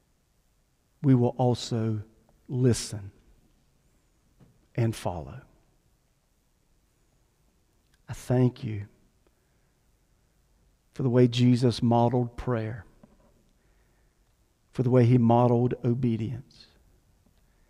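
A middle-aged man speaks calmly into a microphone, in phrases with pauses.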